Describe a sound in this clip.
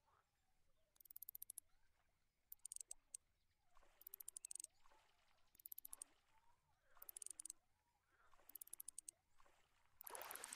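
A fishing reel clicks rapidly in short bursts.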